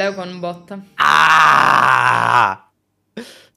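A young man laughs loudly over an online call.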